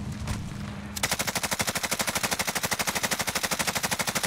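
A rifle fires in a rapid burst of shots.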